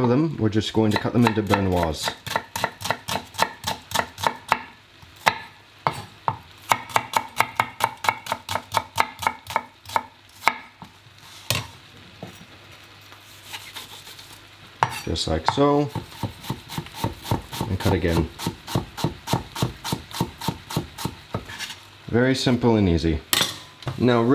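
A knife chops quickly on a cutting board.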